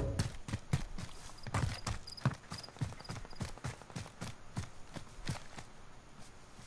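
Quick footsteps thud over the ground.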